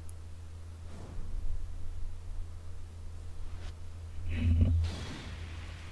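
A deep booming rumble swells from a game.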